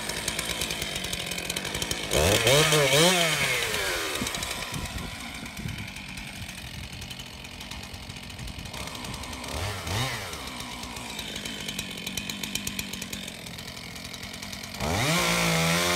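A chainsaw engine idles, then revs up loudly and down again.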